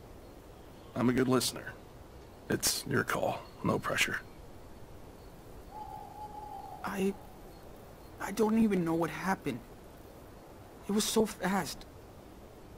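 A young man answers in a low, hesitant voice.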